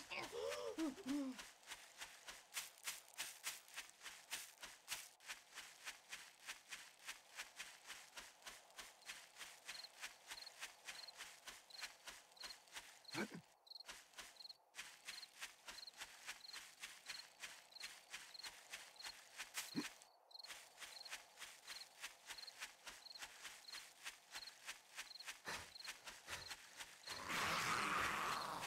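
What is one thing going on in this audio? Footsteps crunch steadily through grass and over rock.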